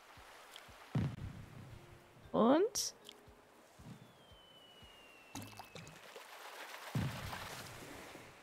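Water splashes as a fish tugs at a bobber.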